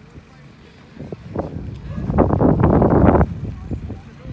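Wind gusts roughly against the microphone outdoors.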